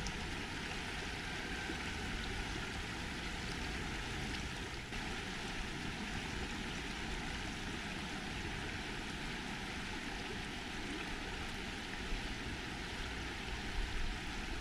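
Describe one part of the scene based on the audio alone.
A shallow river rushes and babbles steadily over stones outdoors.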